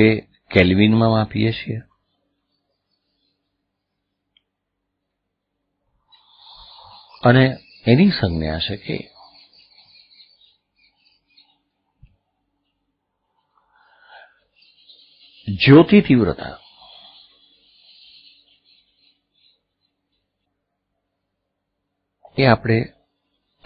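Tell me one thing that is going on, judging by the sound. An older man speaks calmly into a microphone, in short bursts with pauses.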